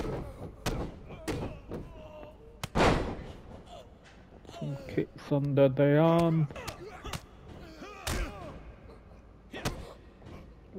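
Heavy blows and bodies thud onto a wrestling mat.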